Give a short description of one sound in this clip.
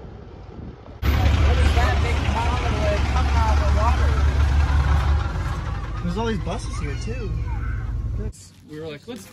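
A vehicle engine idles with a low rumble.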